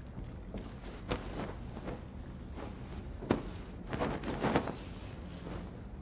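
Soft fabric rustles as a cushion is picked up.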